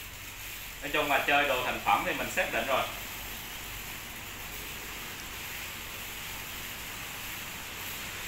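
A hand sprayer hisses as it sprays water.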